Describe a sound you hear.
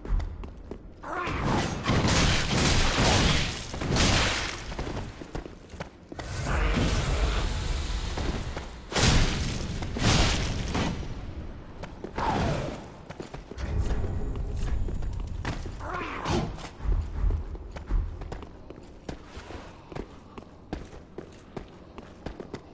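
Blades clash and strike hard in a close fight.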